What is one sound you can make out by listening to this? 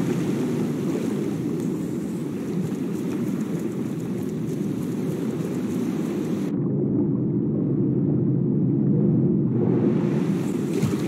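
Water splashes and sloshes around a swimmer.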